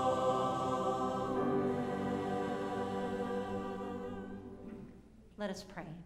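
A choir sings a sustained chord that fades away in a reverberant hall.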